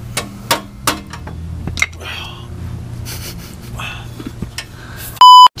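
A wrench clinks and knocks against metal.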